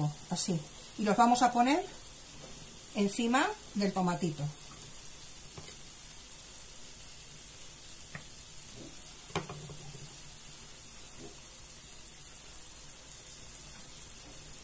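Boiled eggs drop softly into a thick sauce.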